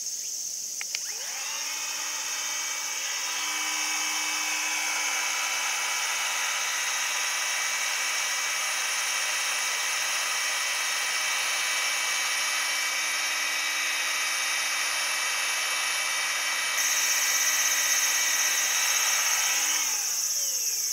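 A small electric blower whirs steadily with a high motor whine, then winds down.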